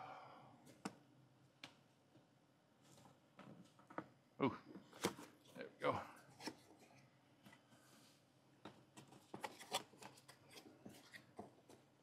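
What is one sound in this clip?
Fingers tap and click against a cardboard box.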